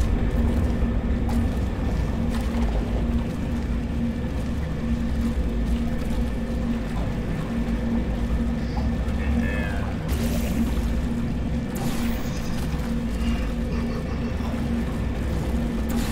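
Blobs of liquid gel patter and splatter onto a hard floor.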